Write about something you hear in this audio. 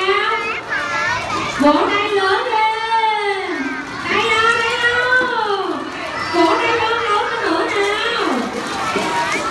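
A high child's voice sings a bouncy melody.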